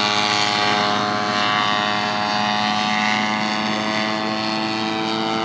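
A small propeller engine drones steadily overhead in the open air.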